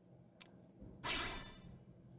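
A soft electronic whoosh sweeps through as a menu closes.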